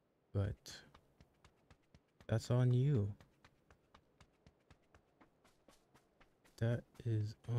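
Footsteps crunch quickly and evenly on the ground.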